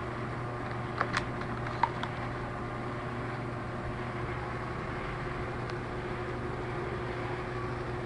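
A phone clicks softly as a hand lifts it from its box.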